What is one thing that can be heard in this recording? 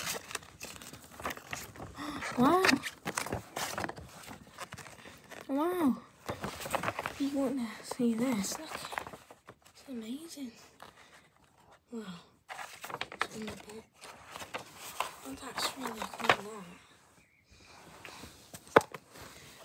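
Glossy paper rustles and crinkles as it is unfolded and handled.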